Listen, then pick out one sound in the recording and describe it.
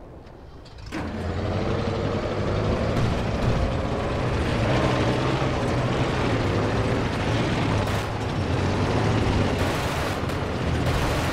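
A heavy tank engine rumbles and roars steadily as the tank rolls along.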